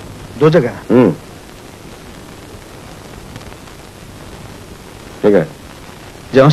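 A man speaks in short, forceful bursts.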